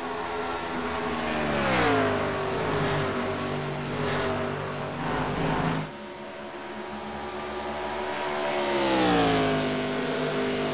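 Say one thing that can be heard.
Race car engines drop in pitch as cars pass by.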